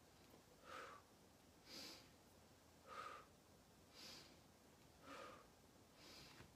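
A woman breathes deeply in and out in a slow, steady rhythm, close by.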